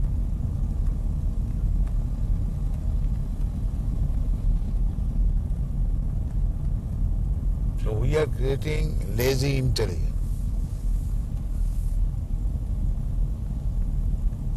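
A car's engine and tyres rumble low and steady from inside the car.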